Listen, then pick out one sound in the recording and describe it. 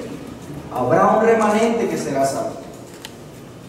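A man speaks briefly and calmly into a microphone in an echoing room.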